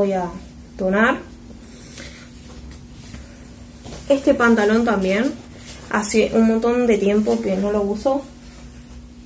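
A young woman speaks with animation, close to the microphone.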